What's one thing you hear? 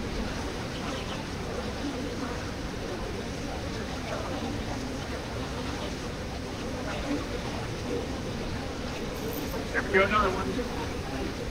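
Water roars steadily as it rushes out of a dam nearby.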